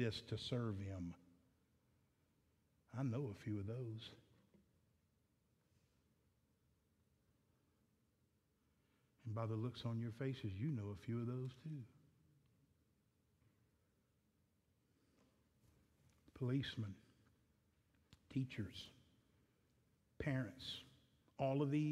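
A man speaks calmly through a microphone, pausing often.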